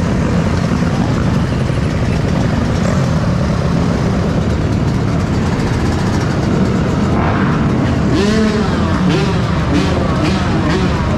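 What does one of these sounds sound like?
Dirt bike engines idle and rumble loudly nearby.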